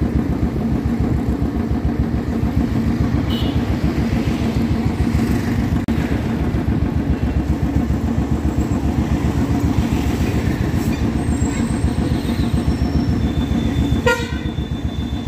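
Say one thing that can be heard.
A motorcycle engine thumps steadily up close.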